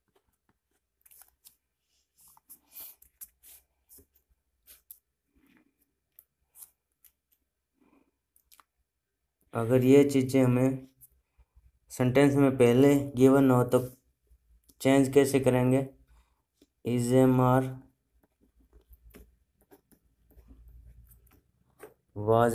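A ballpoint pen scratches across paper.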